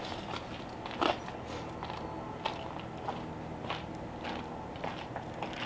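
A rubber mat rustles and scrapes on the ground as it is unrolled.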